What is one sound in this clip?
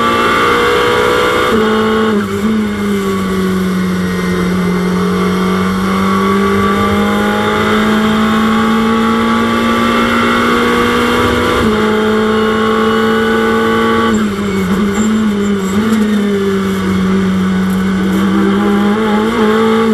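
A racing car engine roars steadily, its pitch shifting as the car changes gear and speed.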